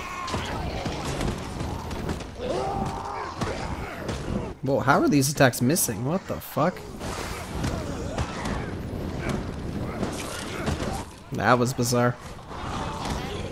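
Flames burst with a loud roaring explosion.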